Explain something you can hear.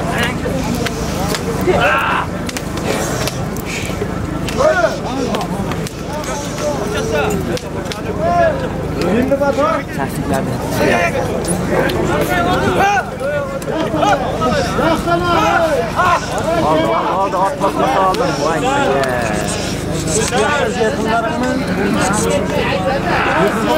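A crowd of men shout and call out nearby outdoors.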